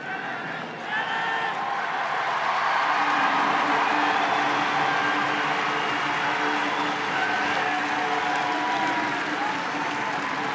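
A large stadium crowd cheers loudly.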